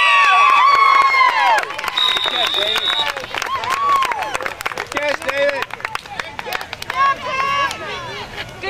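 Young children shout and cheer excitedly outdoors.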